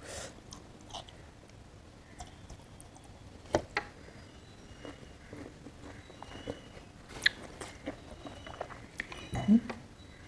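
A woman chews and smacks her lips loudly close up.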